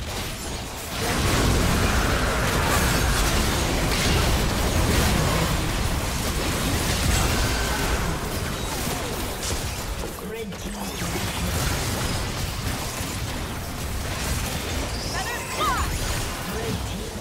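Game spell effects crash and whoosh during a fight.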